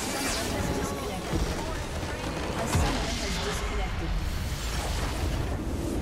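A large crystal structure shatters with a heavy explosion.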